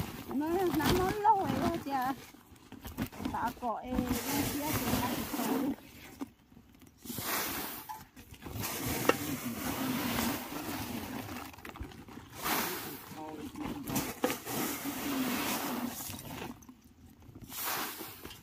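Grain pours and rustles into a plastic sack.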